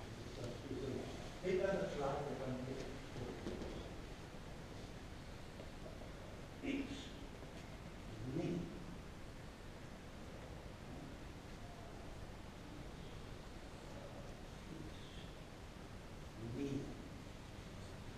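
A man speaks calmly in a large echoing hall.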